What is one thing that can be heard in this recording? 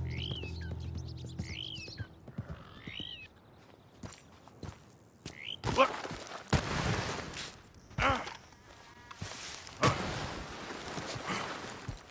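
Boots scrape and step on rock.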